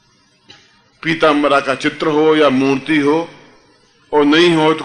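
A middle-aged man chants loudly in long, drawn-out phrases.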